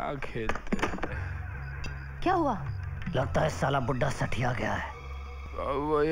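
A man speaks into a telephone with a gruff voice.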